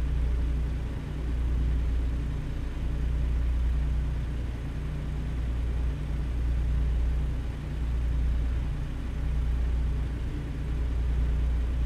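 A truck engine hums low and steady while driving.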